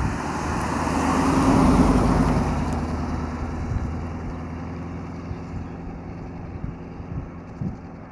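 Tyres hum on the road as a car drives away.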